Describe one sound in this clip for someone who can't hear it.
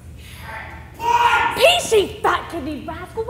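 A woman speaks loudly and excitedly from across an echoing hall.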